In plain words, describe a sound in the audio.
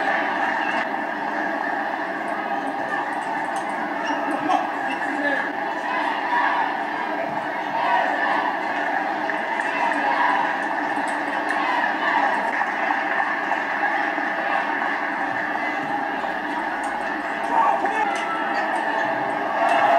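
A table tennis ball clicks back and forth off paddles and the table in a quick rally.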